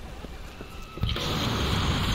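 An explosion roars loudly.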